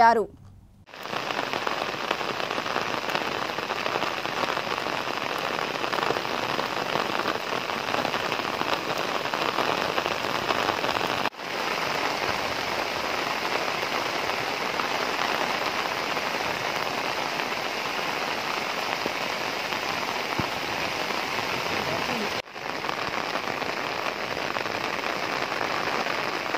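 Floodwater rushes and churns steadily.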